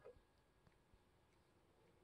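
A telephone receiver is lifted off its cradle with a soft clack.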